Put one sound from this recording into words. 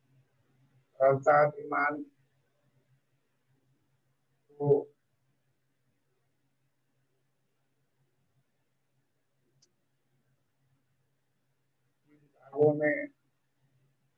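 An elderly man speaks calmly over an online call, in short phrases with long pauses.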